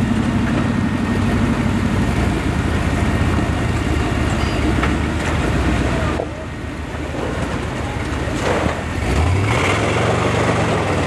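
A rock crawler buggy's engine revs as it climbs over rocks.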